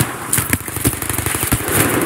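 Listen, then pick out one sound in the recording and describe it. A blast booms amid smoke.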